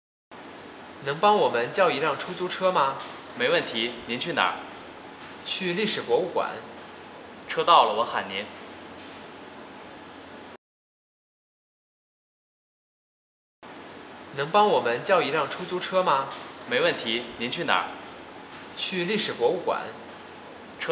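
A young man asks a question calmly, close by.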